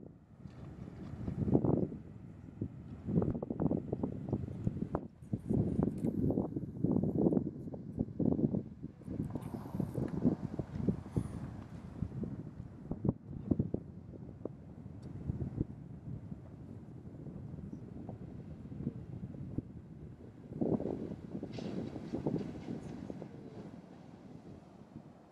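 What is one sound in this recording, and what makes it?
Elephant seals grunt and snort low nearby.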